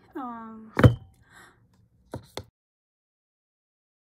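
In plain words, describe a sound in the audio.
A snug box lid slides off with a soft rush of air.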